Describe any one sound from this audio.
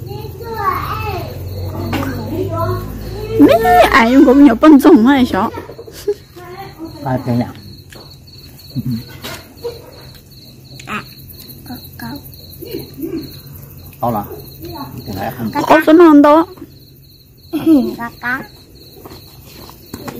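A young girl talks and exclaims close by.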